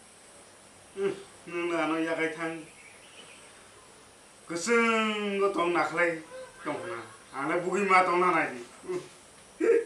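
A young man talks nearby in a calm voice.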